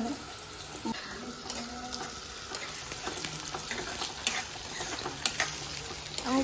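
A spoon scrapes and stirs food in a metal pan.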